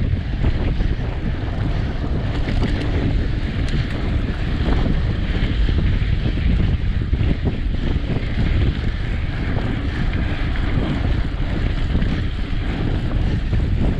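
A bicycle rattles over bumps.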